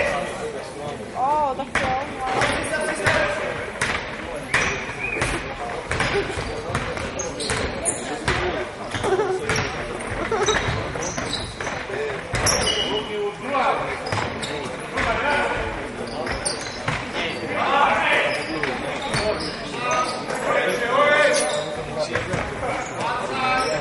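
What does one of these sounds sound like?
Spectators chatter and call out in the stands.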